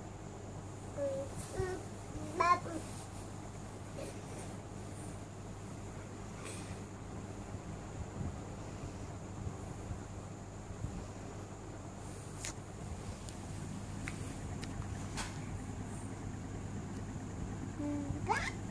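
A toddler babbles and squeals softly close by.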